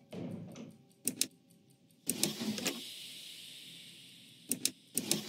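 Puzzle tiles click sharply as they are pressed.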